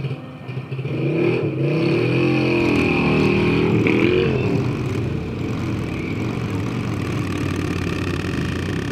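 A motorcycle engine revs up as it pulls away.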